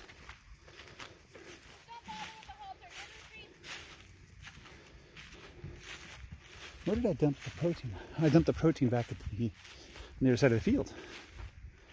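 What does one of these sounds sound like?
A dog trots through dry grass.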